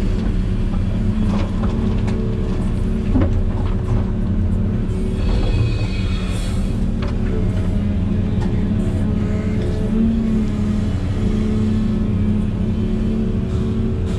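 Soil and stones clatter from an excavator bucket.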